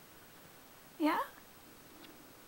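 A cat meows briefly nearby.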